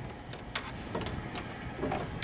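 Water splashes as a net is hauled out of the sea.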